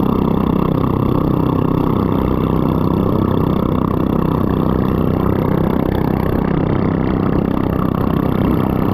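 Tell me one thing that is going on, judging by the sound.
A boat engine drones loudly and steadily.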